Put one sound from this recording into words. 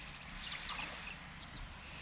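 Water pours from a pot into a pond.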